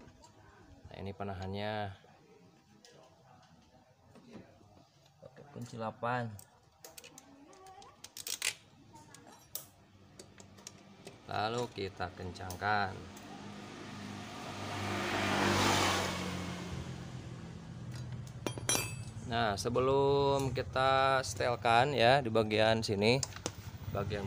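Metal parts click and clink.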